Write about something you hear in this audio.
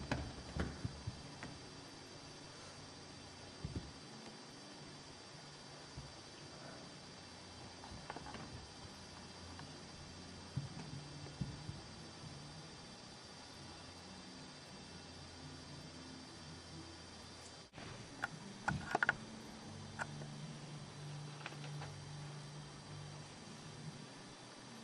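A cat's paws patter and thump on a carpeted floor.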